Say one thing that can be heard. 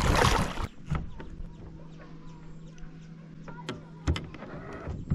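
A small electric boat motor hums steadily.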